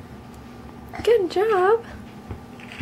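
A baby coos and squeals in a wavering voice close by.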